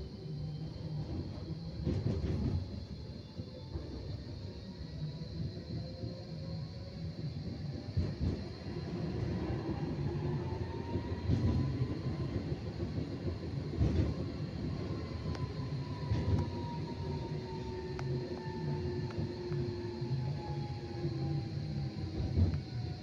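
A tram's electric motor whines, rising and falling in pitch.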